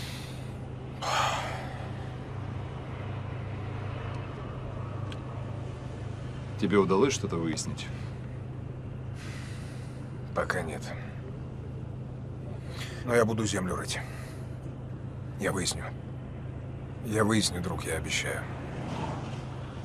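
A man answers calmly inside a car.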